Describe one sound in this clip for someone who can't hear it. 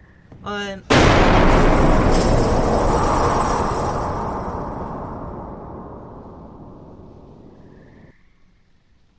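A loud boom sounds suddenly and slowly fades away.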